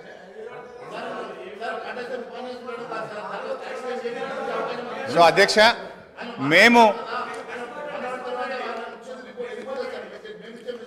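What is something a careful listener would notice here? A man speaks forcefully into a microphone in a large hall.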